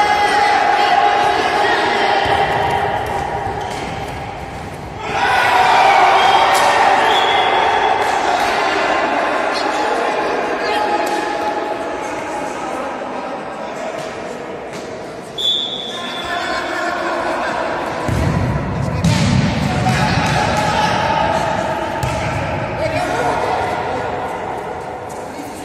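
Young men shout and call out across a large echoing hall.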